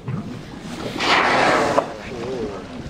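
A whale spouts with a loud, breathy whoosh nearby.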